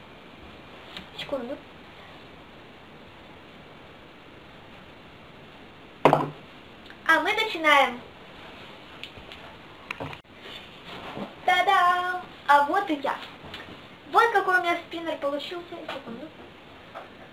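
A young girl sings and talks close by in a high voice.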